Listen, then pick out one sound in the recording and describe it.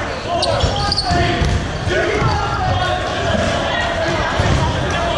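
Balls thud against the floor and players.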